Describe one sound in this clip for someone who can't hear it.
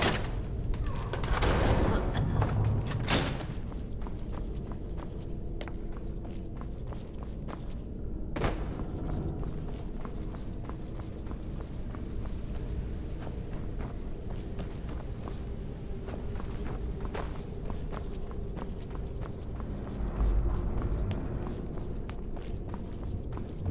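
Footsteps tread steadily on a stone floor in an echoing space.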